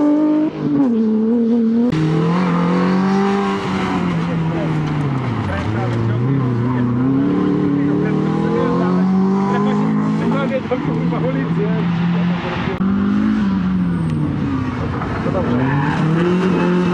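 A four-cylinder rally hatchback revs hard through the gears.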